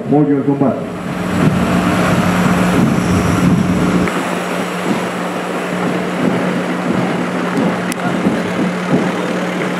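A crowd murmurs along the street.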